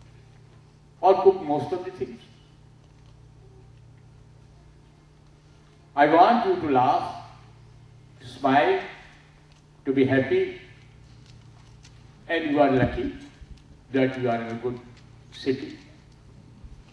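A middle-aged man speaks in bursts through a microphone and loudspeakers in a large hall, with pauses between phrases.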